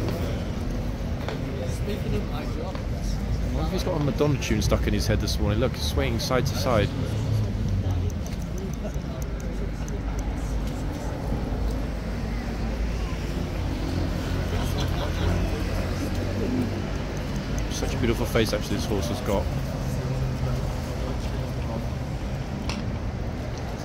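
A horse shifts its hooves on stone paving.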